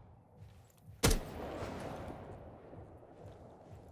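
A rifle fires a single loud shot that echoes away.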